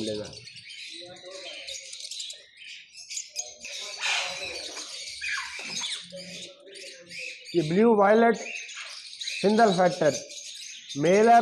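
Parrots chirp and squawk shrilly close by.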